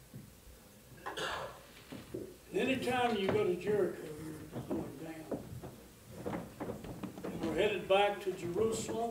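An elderly man speaks with expression, heard at a distance in a room.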